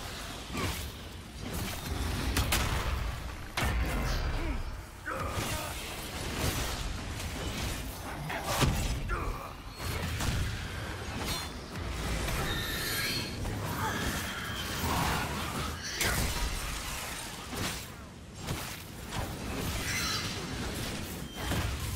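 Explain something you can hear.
Fire spells roar and crackle in a video game battle.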